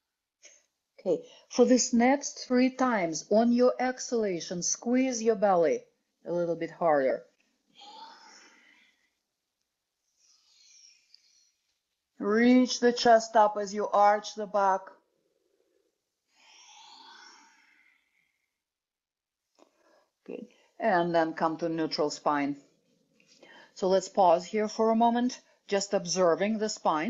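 A woman speaks calmly and clearly, giving instructions, with pauses between phrases.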